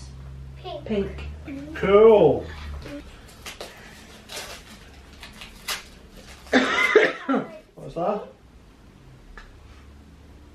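Wrapping paper crinkles and rustles.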